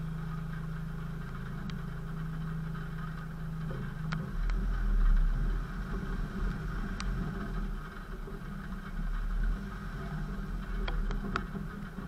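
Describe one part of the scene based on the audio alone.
Tyres crunch over gravel and mud.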